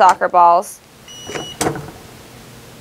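A heat press swings down and clunks shut.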